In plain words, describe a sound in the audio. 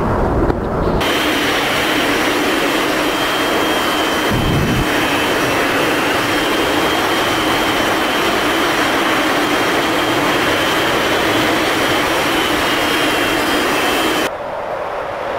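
A jet engine roars steadily close by.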